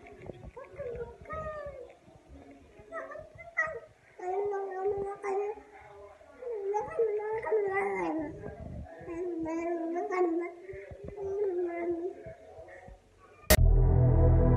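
A baby babbles and coos loudly, close by.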